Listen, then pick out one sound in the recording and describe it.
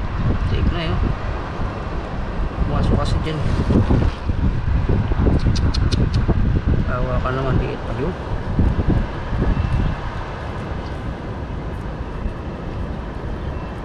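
A fishing net rustles as fish are pulled free.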